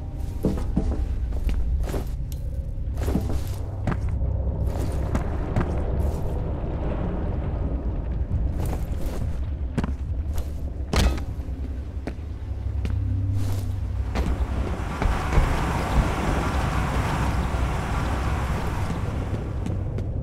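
Footsteps clang on a metal grating.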